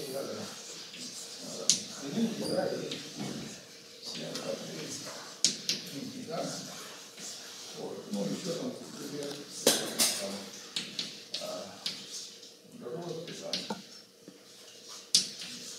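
An elderly man talks calmly in a room with some echo.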